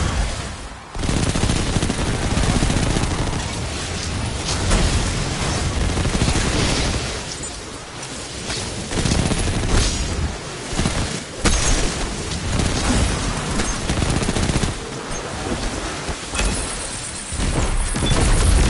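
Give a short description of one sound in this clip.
Guns fire rapidly in a video game.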